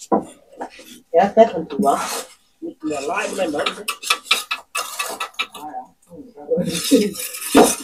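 A trowel scrapes mortar.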